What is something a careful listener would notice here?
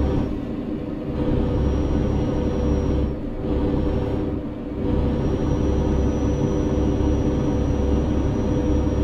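A heavy truck's diesel engine drones while cruising along a road.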